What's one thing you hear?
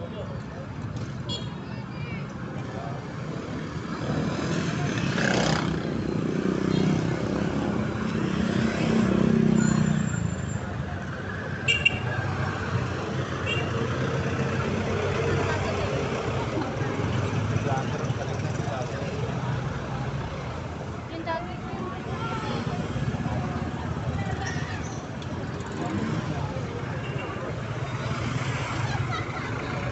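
A crowd of people chatter in the open air.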